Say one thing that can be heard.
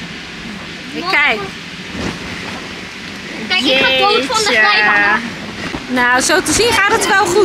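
Children shout and squeal excitedly close by.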